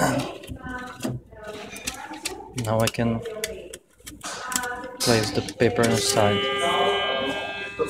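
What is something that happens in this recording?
Paper rustles as it is pulled from a small printer.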